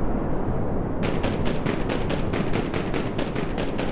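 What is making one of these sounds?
Fires crackle nearby.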